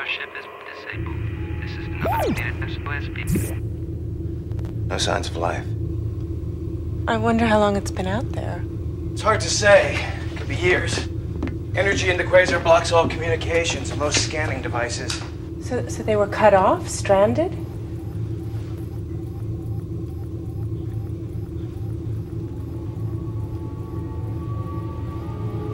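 A steady low machine hum drones throughout.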